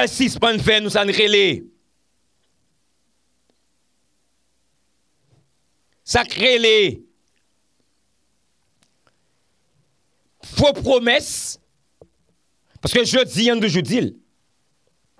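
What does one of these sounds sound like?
A man speaks with animation into a close microphone, pausing between phrases.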